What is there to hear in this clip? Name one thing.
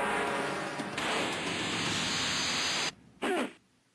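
A loud rushing blast roars and then cuts off.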